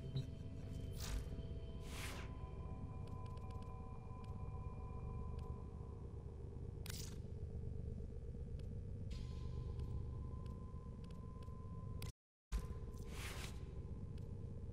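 Short whooshing menu sounds sweep past now and then.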